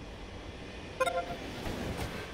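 A short electronic chime rings out.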